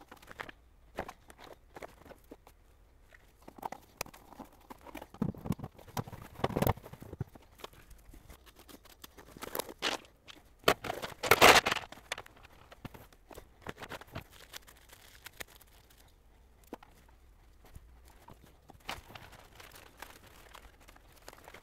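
Plastic parts knock and scrape together.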